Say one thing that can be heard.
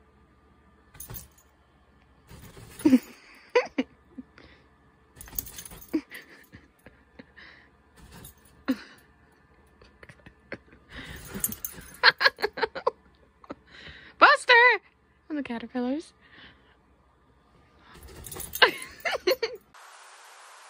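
A small dog's chain collar jingles as the dog moves.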